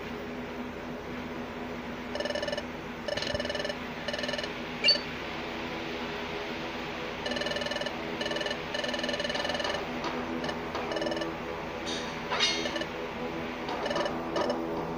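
Soft electronic music plays steadily.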